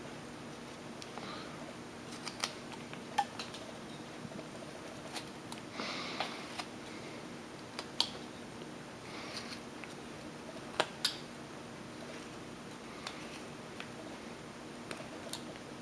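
A carving knife slices small chips from soft wood.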